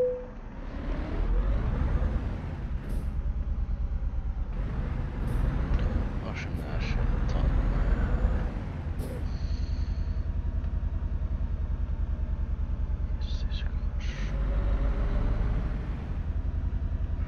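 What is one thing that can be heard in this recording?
A truck's diesel engine rumbles steadily, rising and falling as it drives slowly.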